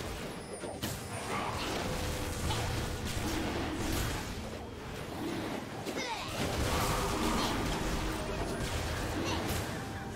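Game sword strikes clash sharply.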